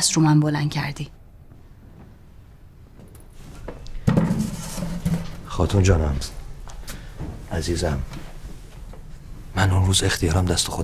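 A man speaks calmly and firmly close by.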